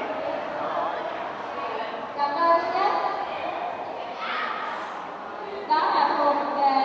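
A young woman speaks through a microphone over loudspeakers.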